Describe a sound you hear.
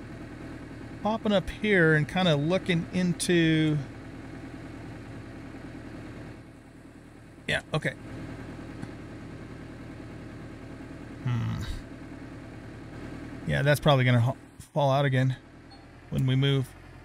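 A middle-aged man talks with animation into a close microphone.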